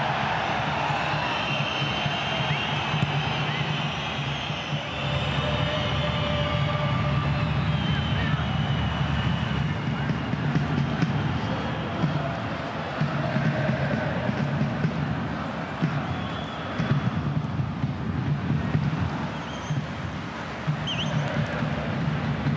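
A large stadium crowd chants and cheers steadily.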